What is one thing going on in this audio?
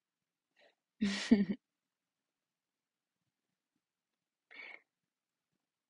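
A young woman speaks briefly and softly, close to a microphone.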